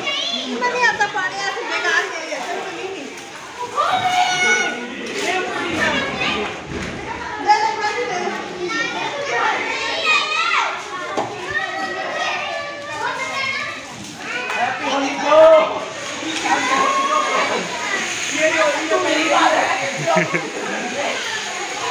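Children shout and laugh playfully outdoors.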